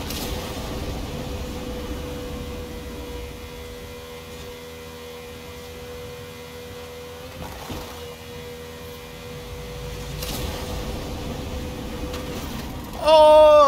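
A race car engine roars at a high, steady pitch.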